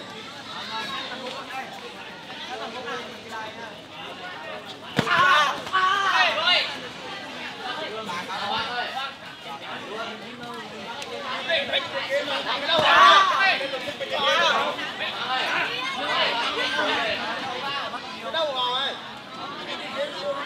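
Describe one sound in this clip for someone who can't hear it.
A crowd chatters and shouts outdoors.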